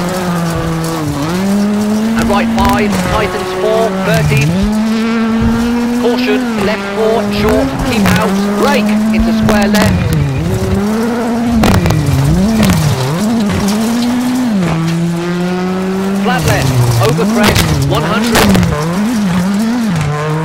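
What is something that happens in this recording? Gravel crunches and sprays under tyres.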